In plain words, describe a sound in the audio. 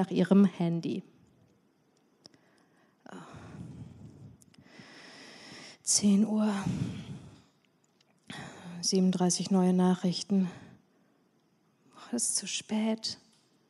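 A young woman reads aloud calmly into a microphone, with pauses.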